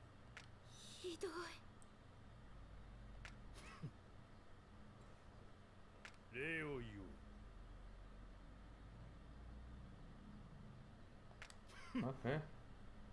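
A young man makes short vocal sounds close to a microphone, with long quiet pauses between them.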